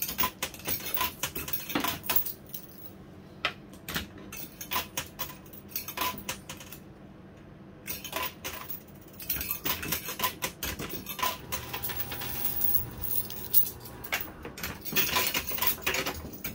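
Metal coins clink and clatter as they drop and slide against each other.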